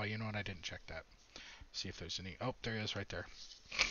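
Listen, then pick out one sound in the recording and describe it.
Playing cards shuffle and rustle between hands.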